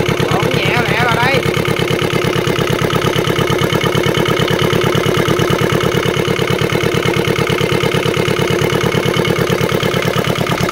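A small diesel engine runs at a steady idle, knocking rapidly and evenly.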